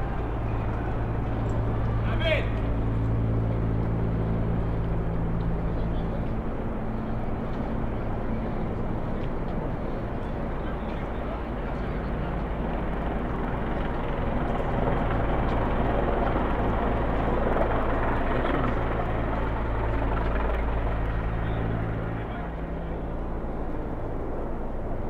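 A car engine hums steadily nearby.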